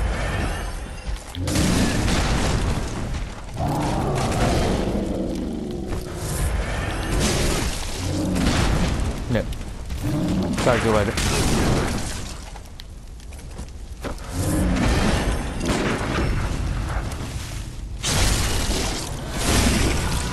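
A large beast growls and snarls.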